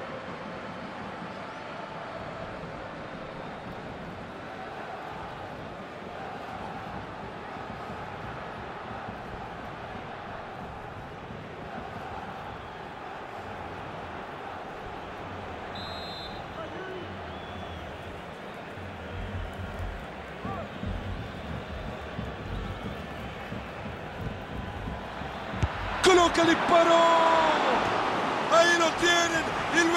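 A crowd murmurs steadily in a large stadium.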